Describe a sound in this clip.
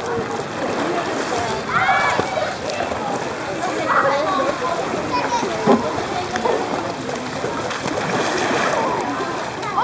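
Water splashes and laps as a child wades through a pool.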